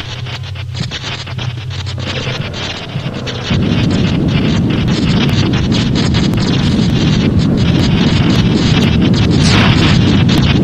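Magical sparkles shimmer and tinkle.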